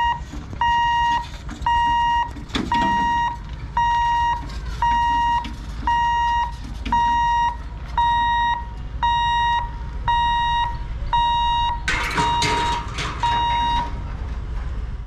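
A level crossing bell beeps in a steady, even rhythm.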